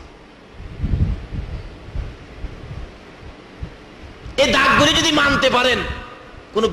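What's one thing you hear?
A man preaches forcefully into a microphone, his voice loud and strained in a reverberant space.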